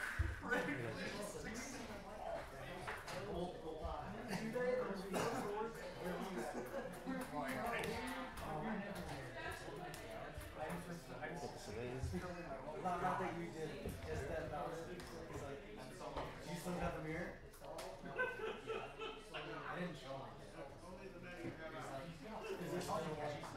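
Plastic game pieces click and clatter on a table.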